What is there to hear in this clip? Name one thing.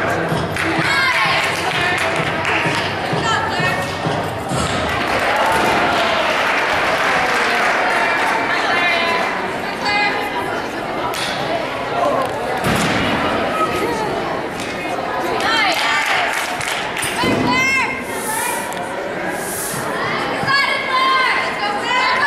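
A crowd of people chatters in a large echoing hall.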